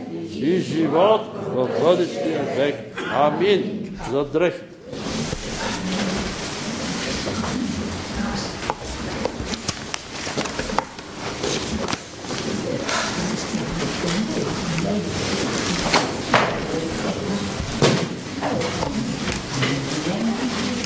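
An elderly man reads out loudly in a reverberant room.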